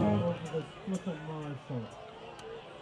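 A bass guitar plays a few low notes.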